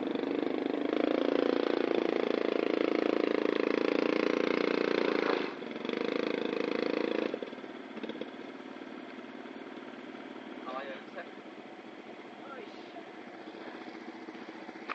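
A motorbike engine revs hard and strains, then drops to a quieter idle.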